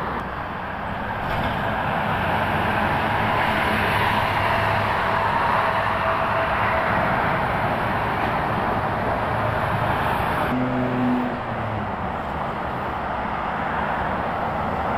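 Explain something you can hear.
Heavy traffic roars steadily past on a busy highway.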